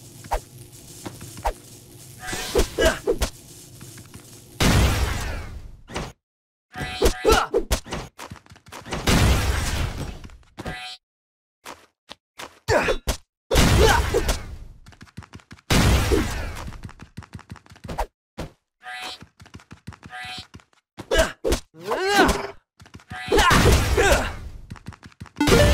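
Sword swipes and punches land with sharp, quick thwacks.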